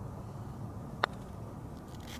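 A putter taps a golf ball with a sharp click.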